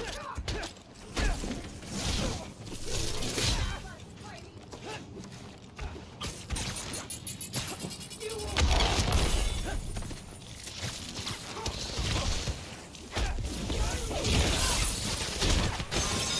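Punches and impacts thud and crack during a fight.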